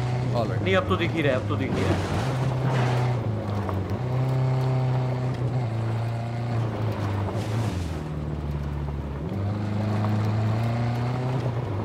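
Tyres crunch over dirt and gravel.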